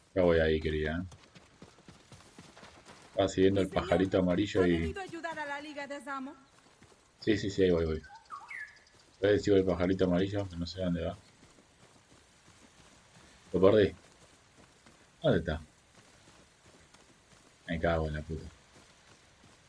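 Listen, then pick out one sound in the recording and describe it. A man speaks with animation into a nearby microphone, in short bursts.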